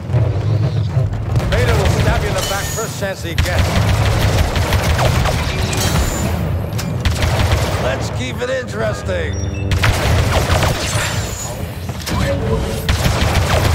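A lightsaber hums and swings.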